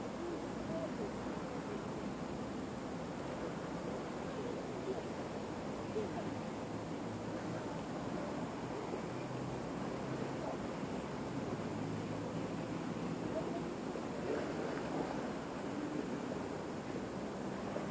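Wind blows steadily outdoors, rustling grass.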